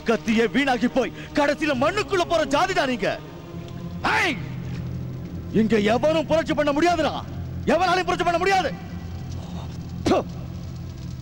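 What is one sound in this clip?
A middle-aged man shouts angrily nearby.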